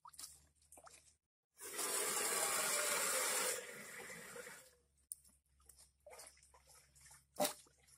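A knife cuts through skin and flesh.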